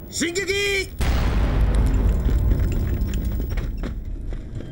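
Soldiers rush past with heavy footsteps and rustling gear.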